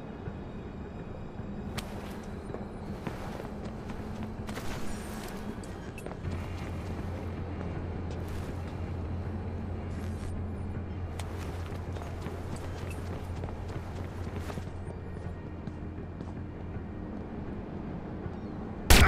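Soft footsteps shuffle on concrete.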